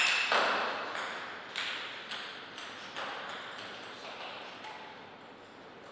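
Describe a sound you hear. A ping pong ball bounces with quickening, fading taps.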